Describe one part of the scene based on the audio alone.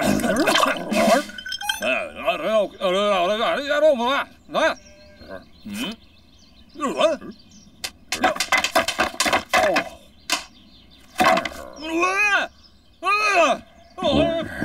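A man mumbles and grumbles with animation, close by.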